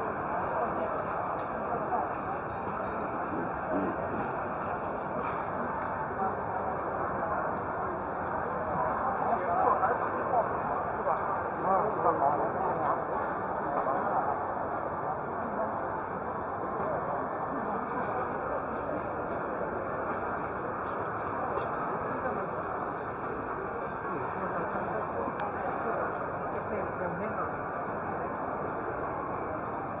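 A crowd of men and women chatter all around in a large, busy hall.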